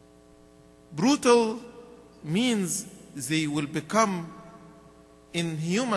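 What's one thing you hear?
A man speaks slowly and calmly into a microphone, with pauses between phrases.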